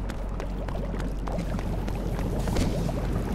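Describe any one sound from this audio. Small fires crackle and pop.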